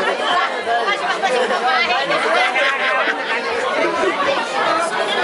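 A crowd of men and women chatters and laughs loudly.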